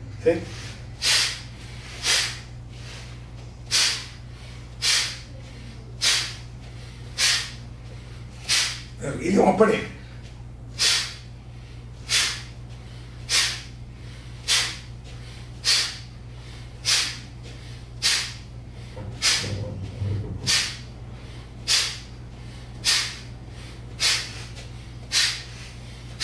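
A man breathes out forcefully through the nose in a steady, quick rhythm.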